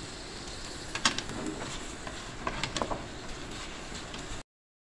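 A wooden spatula scrapes and clatters against a metal pan.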